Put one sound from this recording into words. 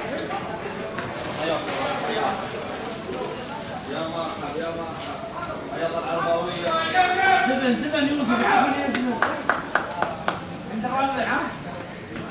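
Young men call out to each other across an open, echoing stadium.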